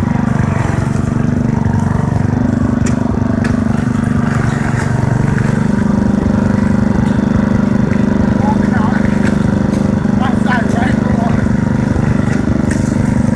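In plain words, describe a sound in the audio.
Water splashes and churns under the wheels of a quad bike.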